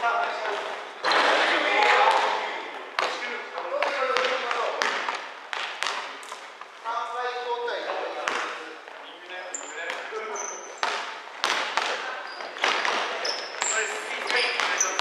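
Young players shout and call to each other.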